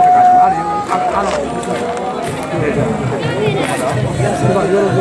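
A crowd of men shout and chant together outdoors.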